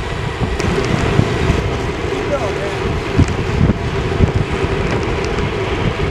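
Wind buffets loudly across a moving bicycle.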